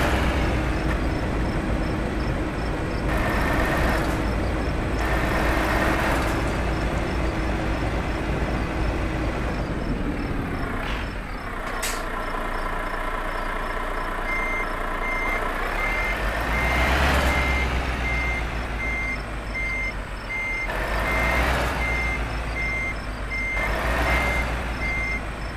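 A truck engine rumbles steadily.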